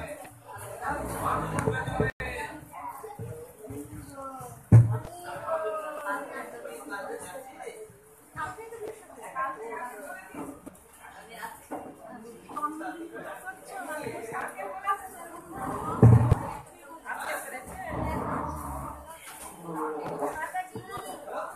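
Feet shuffle and stamp on the floor as people dance.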